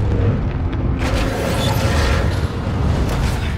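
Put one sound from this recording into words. Metal scrapes and grinds.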